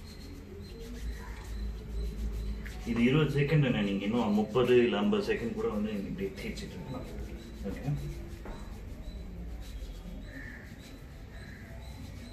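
Wet hands rub together with soap.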